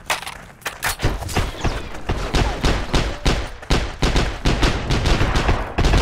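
Semi-automatic rifle shots crack in a rapid exchange of gunfire.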